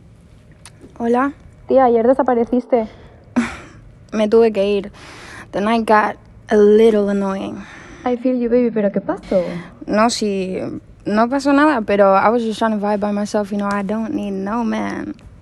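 A young woman talks on a phone with animation, close by.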